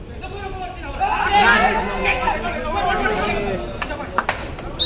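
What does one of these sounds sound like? A crowd of spectators shouts and cheers excitedly.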